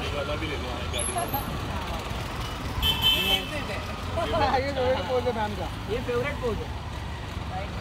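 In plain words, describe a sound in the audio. A woman speaks cheerfully nearby.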